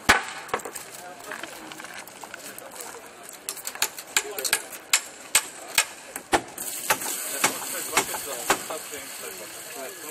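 A plastic bucket knocks and rattles as it is carried.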